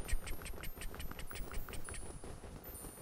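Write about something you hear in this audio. Armored footsteps clink quickly and evenly.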